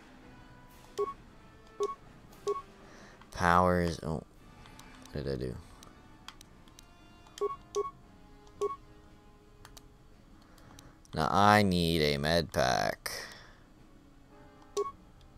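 Short electronic menu beeps chime now and then.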